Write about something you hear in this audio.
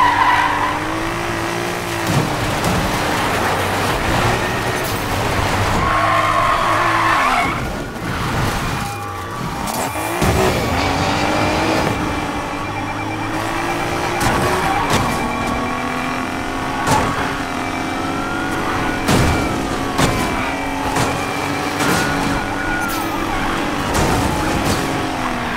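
A car engine roars and revs at high speed.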